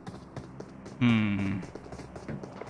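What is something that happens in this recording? A young man speaks briefly into a microphone.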